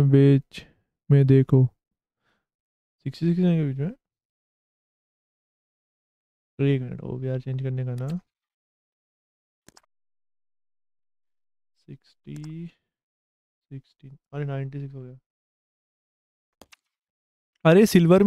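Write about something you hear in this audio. A young man talks casually into a close microphone, in short bursts with pauses.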